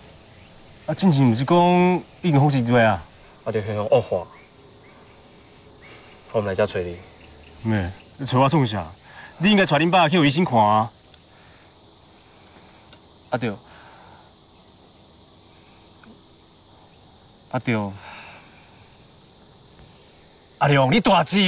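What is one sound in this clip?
Another young man answers with animation, close by.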